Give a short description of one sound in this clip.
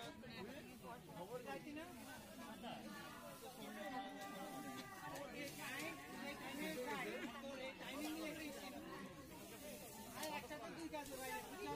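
Several women talk and chat nearby, outdoors.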